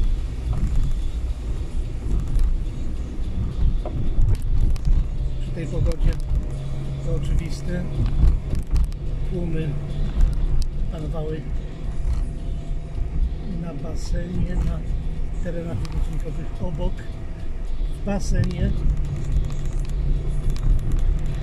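A vehicle's engine rumbles steadily from inside the cab.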